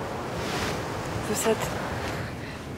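A woman speaks softly up close.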